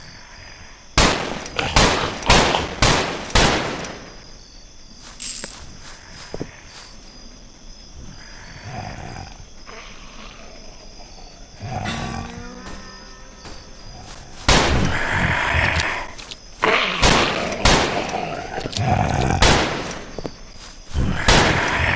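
A pistol fires sharp shots in quick bursts.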